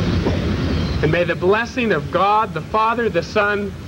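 A man speaks calmly nearby, as if reading out.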